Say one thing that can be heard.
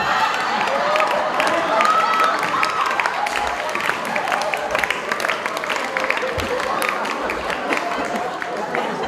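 An audience claps rapidly and steadily.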